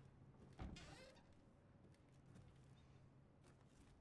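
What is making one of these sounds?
Wooden cabinet doors creak open.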